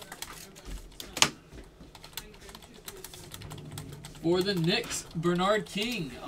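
Plastic card cases click and rattle as they are handled.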